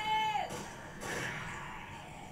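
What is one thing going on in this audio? Gunshots crack from a television's speakers.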